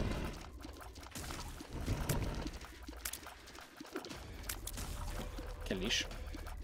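Game sound effects pop and splat in quick bursts.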